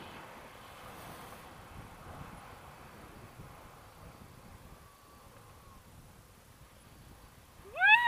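Wind buffets the microphone outdoors in a steady rumble.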